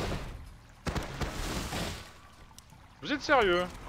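A magic spell whooshes and shimmers.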